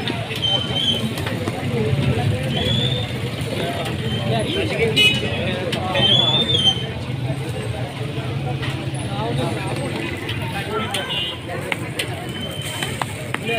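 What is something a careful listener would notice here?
A metal spatula scrapes and taps against a griddle.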